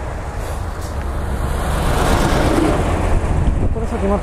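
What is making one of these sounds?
A heavy truck roars past close by.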